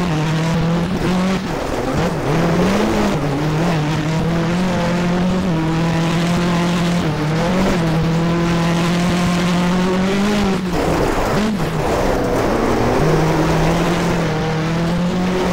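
A rally car engine roars at high revs, dipping and rising as gears change.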